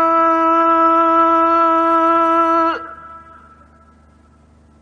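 A man recites in a long, held, chanting note that breaks off and echoes away.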